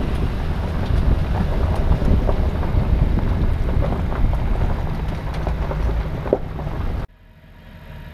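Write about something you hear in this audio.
A vehicle rumbles and jolts along a rough dirt track.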